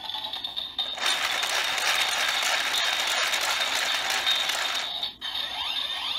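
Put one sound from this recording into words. A toy's handle is cranked with a rapid ratcheting whir.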